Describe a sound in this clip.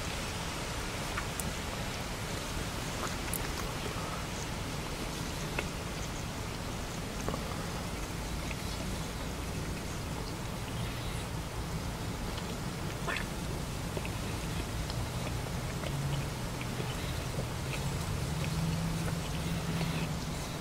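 An elderly man chews food close to a lapel microphone.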